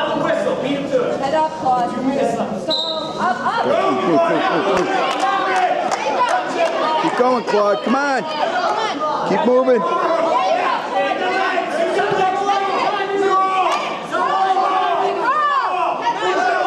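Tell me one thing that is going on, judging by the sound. Several men and women shout encouragement loudly in a large echoing hall.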